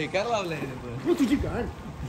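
Water splashes as a swimmer plunges into a pool.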